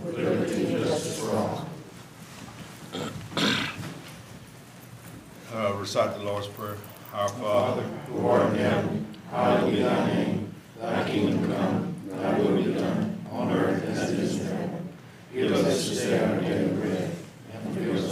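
A man leads a prayer aloud, speaking slowly and calmly through a microphone in a large room.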